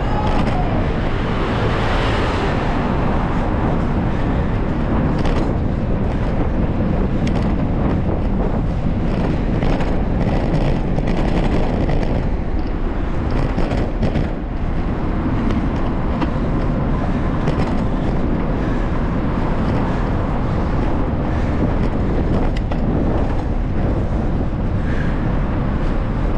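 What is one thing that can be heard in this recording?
Tyres roll over rough pavement.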